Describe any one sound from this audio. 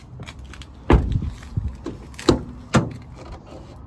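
A car door clicks open with a thud.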